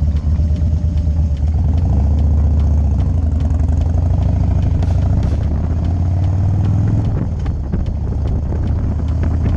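A motorcycle engine rumbles steadily up close as it rides off and speeds up.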